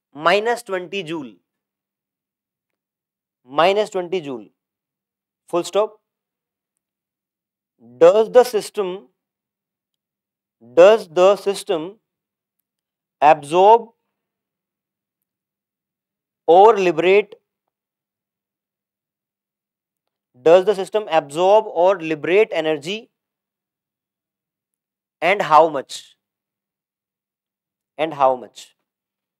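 A man speaks calmly into a clip-on microphone in short bursts with pauses.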